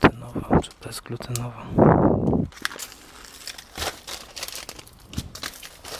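Paper packets crinkle and rustle in a hand.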